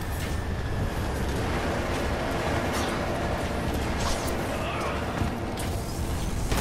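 A dropship's engines roar overhead.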